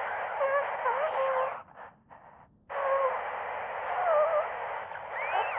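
A woman speaks anxiously through a distorted radio.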